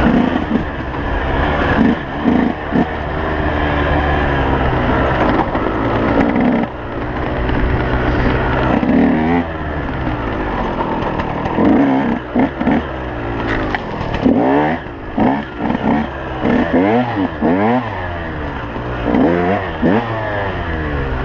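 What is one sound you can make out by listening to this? A dirt bike engine revs and roars up and down close by.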